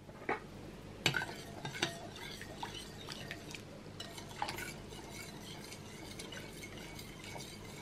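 A spoon clinks against a glass bowl while stirring.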